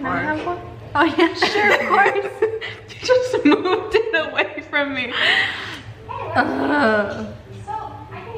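Two young women laugh loudly.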